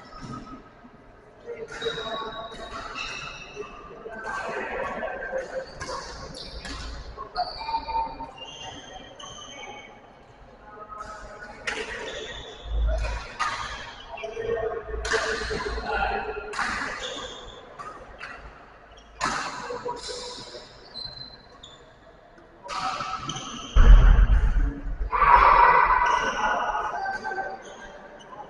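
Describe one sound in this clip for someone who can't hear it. Shoes squeak and thump on a hard court floor.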